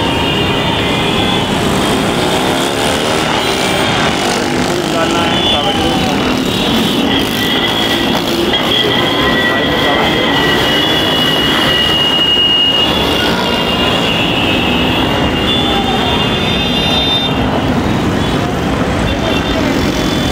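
Traffic noise fills a busy street outdoors.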